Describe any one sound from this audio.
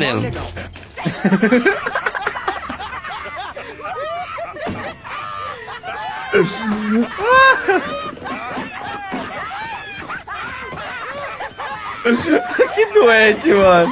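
A young man laughs loudly and talks with animation close to a microphone.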